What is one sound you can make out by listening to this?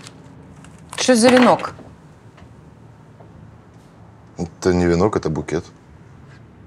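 A young woman speaks briefly and quietly nearby.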